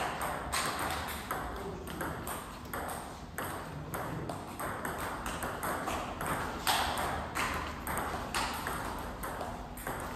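A table tennis ball clicks back and forth off paddles and a table in an echoing hall.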